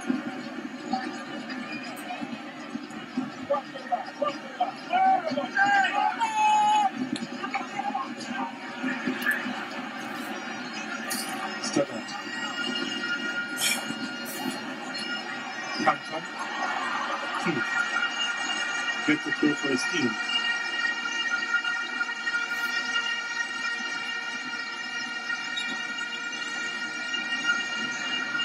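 A large crowd murmurs and cheers throughout in an open stadium.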